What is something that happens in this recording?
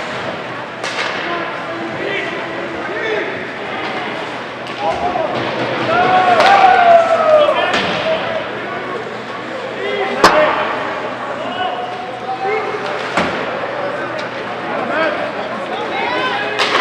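Hockey sticks and a puck clack against the ice and boards.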